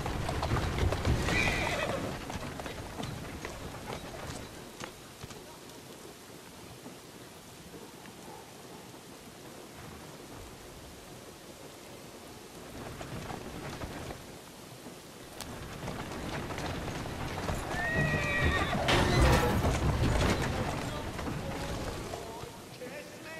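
Carriage wheels rumble over the street.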